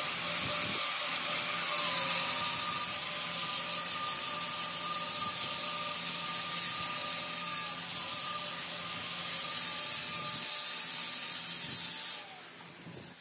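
An angle grinder whines and grinds metal.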